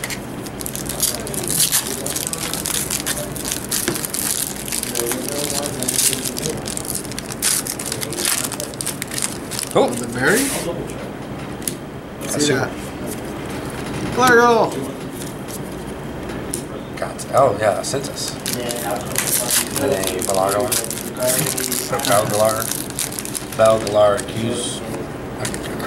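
Playing cards slide and flick against each other as they are sorted.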